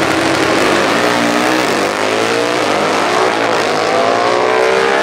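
A drag racing motorcycle speeds away with a rising roar.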